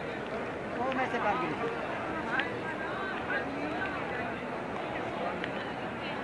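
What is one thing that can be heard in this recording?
A crowd of people murmurs and chatters nearby outdoors.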